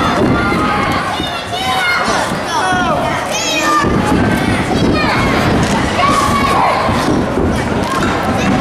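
A crowd in a large echoing hall cheers and shouts throughout.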